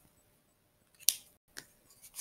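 A pen clicks as it is set down on a table.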